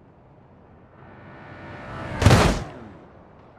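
A car engine revs and whooshes past at speed.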